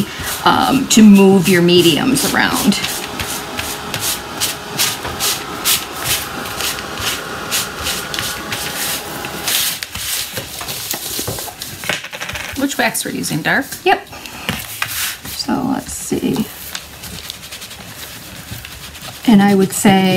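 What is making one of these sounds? A sponge dabs and rubs against cloth with soft scratchy taps.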